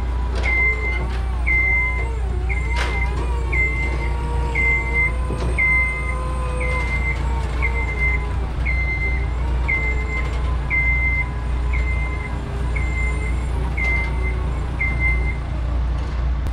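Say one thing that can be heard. A lift's electric motor whines as the lift drives along.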